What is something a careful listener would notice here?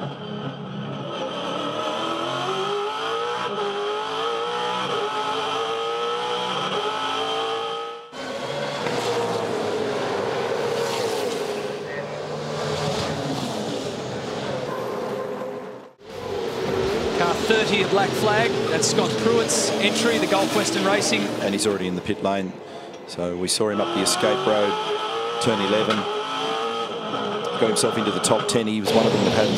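Racing car engines roar loudly, revving up and down as they speed past.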